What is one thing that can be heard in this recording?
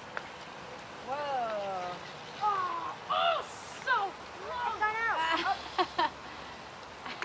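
Young children talk and call out excitedly close by.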